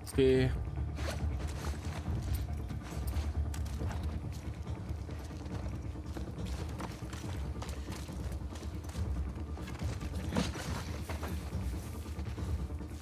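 Footsteps crunch and rustle through grass and brush.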